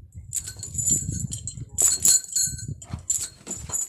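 A metal chain rattles and clinks on the ground.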